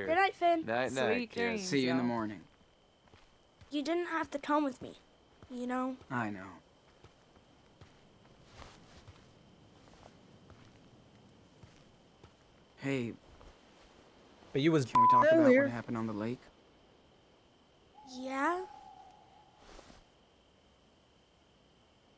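A young man talks into a microphone.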